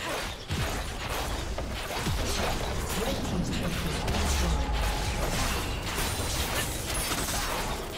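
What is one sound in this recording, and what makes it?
Game spell effects crackle and burst in a dense fight.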